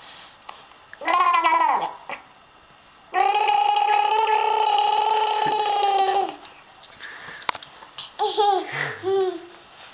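A baby babbles and coos close by.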